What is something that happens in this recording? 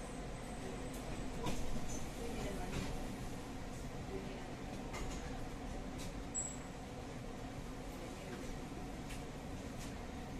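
A tram rumbles steadily along the rails, heard from inside the carriage.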